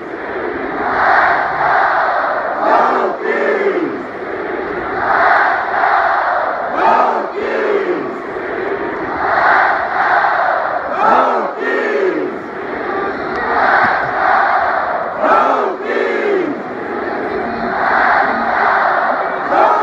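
A huge stadium crowd roars in regular waves outdoors.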